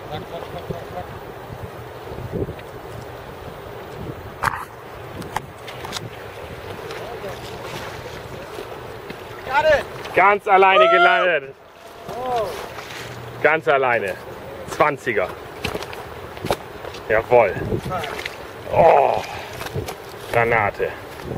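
A river rushes steadily close by.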